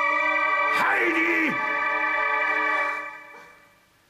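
An organ plays a steady chord.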